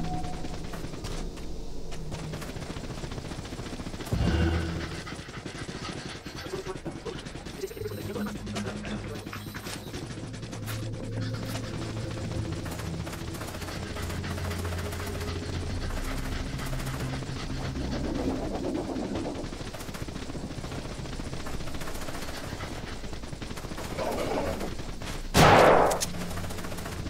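Footsteps thud steadily as a game character runs.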